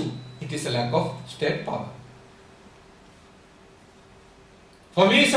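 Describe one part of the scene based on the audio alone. A man speaks calmly into a microphone in a room with a slight echo.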